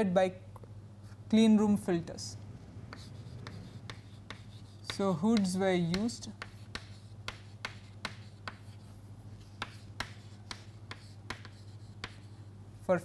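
Chalk taps and scratches on a chalkboard.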